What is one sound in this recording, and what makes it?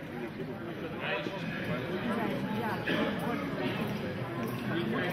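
Several people talk in a group.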